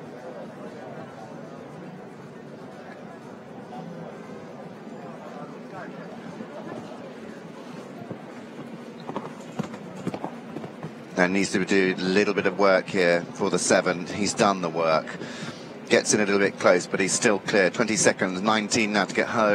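A crowd murmurs softly in the background.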